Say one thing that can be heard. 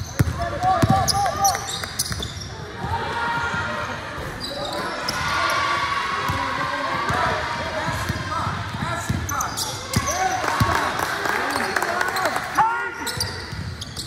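A basketball bounces on the hardwood.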